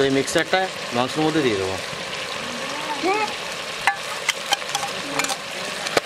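Liquid pours and splashes into a pot.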